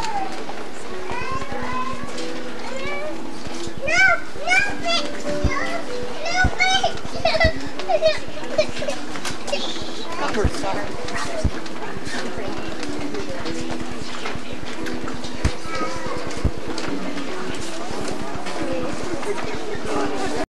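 A choir of young girls sings together in a hall, heard from the audience.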